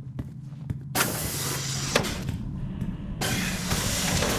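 A heavy door hisses open.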